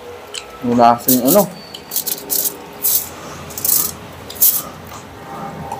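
Foil crinkles as hands pick up food.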